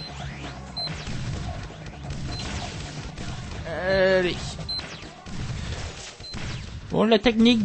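Laser guns zap in short bursts.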